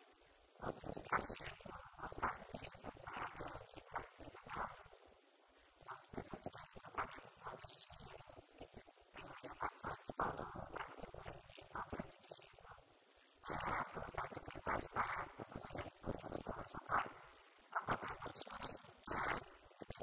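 A young woman speaks with animation into a microphone, heard through a loudspeaker in a large room.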